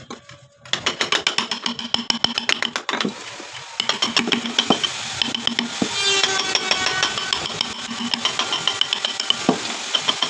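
A mallet taps rapidly on a chisel cutting into wood.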